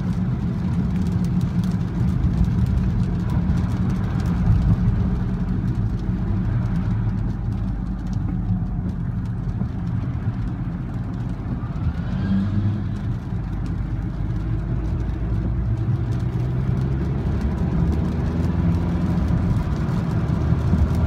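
A car engine hums steadily from inside the cabin, rising and falling with speed.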